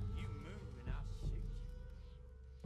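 A man speaks threateningly, close by.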